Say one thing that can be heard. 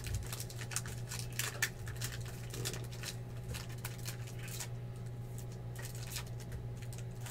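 Card wrappers crinkle and rustle as hands tear open a pack.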